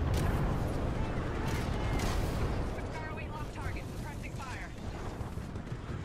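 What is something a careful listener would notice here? Explosions boom and rumble heavily.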